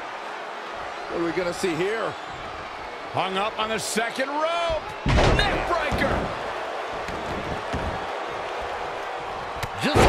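A crowd cheers and roars throughout a large arena.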